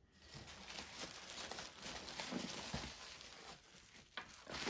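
Tissue paper rustles and crinkles as it is unwrapped.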